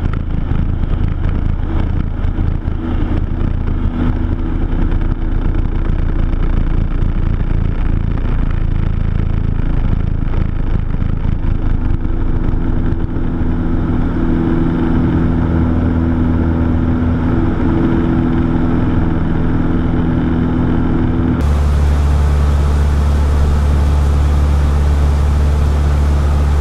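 A small plane's engine drones loudly and steadily, rising in pitch as the plane takes off.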